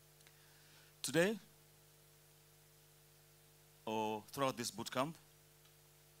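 A man speaks with animation through a microphone in short bursts.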